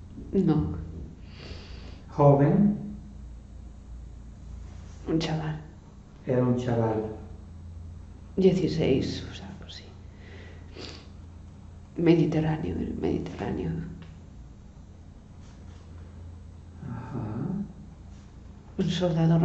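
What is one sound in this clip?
A young woman speaks slowly nearby, in short strained bursts with pauses.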